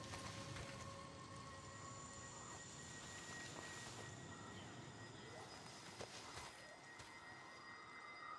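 Footsteps crunch and rustle through dry brush.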